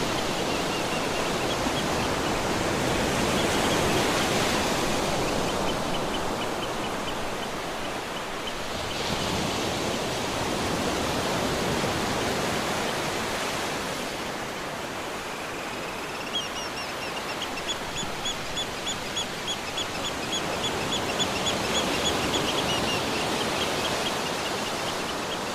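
Waves wash and break onto the shore with a steady rushing roar.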